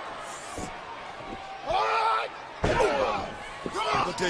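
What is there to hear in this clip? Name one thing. A wrestler's body thuds onto a ring mat.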